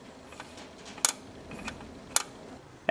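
A metal tool clicks and scrapes against a metal fitting.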